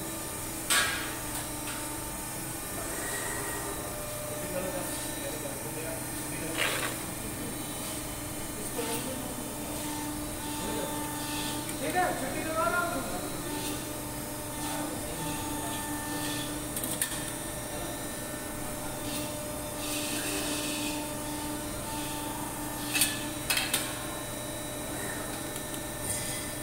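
A machine hums steadily nearby.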